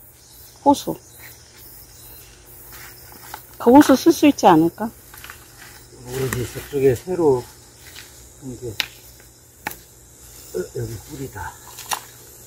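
A hand tool scrapes and digs into dry soil.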